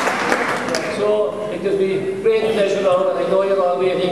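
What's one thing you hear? An older man speaks calmly into a microphone over a loudspeaker.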